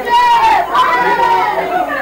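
A boy talks loudly, close by.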